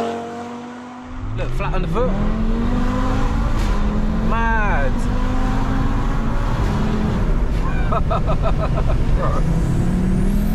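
A car engine roars steadily from inside the car while driving.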